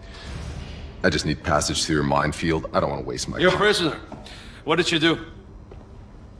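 A second man speaks calmly in a deep voice.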